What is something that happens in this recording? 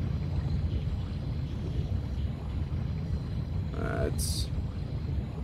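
A small underwater robot's motor rumbles steadily under water.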